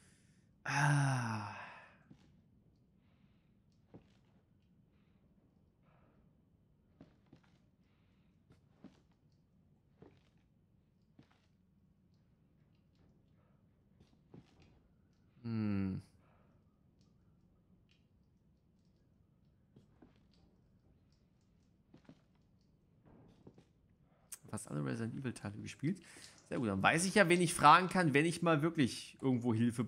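A young man speaks into a close microphone with animation.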